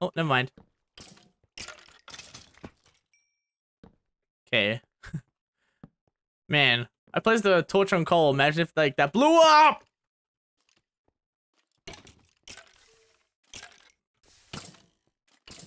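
A pickaxe chips at stone with short knocks.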